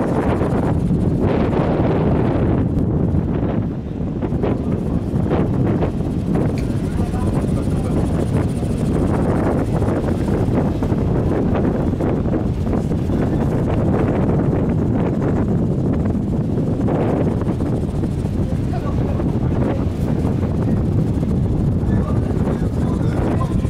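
Choppy waves slosh and lap.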